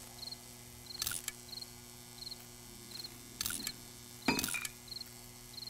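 Short game menu sounds click and rustle as items are picked.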